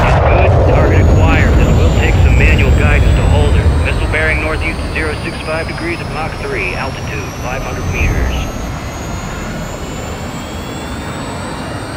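A missile streaks through the air with a rushing roar.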